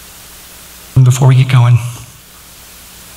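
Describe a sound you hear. A man speaks briefly through a microphone in a large echoing hall.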